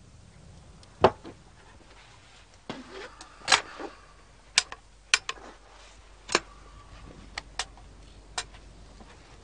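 Metal clicks as a shotgun is loaded and handled.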